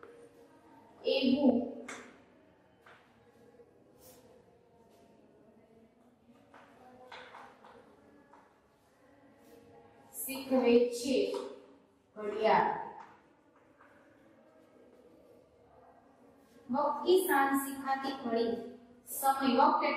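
A woman speaks clearly in short bursts nearby.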